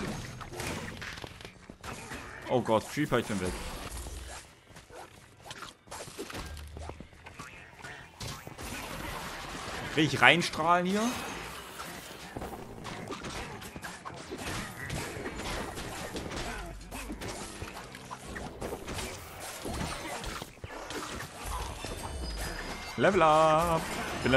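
Game sound effects of magic blasts and hits burst out.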